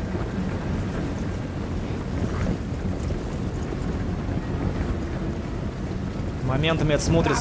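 A large army tramps and rumbles across snowy ground.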